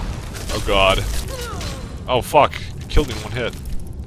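Sharp impacts thud during a fight.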